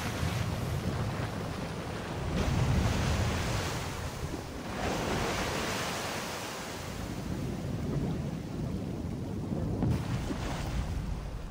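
Water gushes and splashes down in a heavy cascade.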